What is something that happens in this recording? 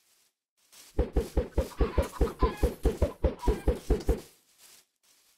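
Eggs are thrown rapidly, each landing with a quick soft pop.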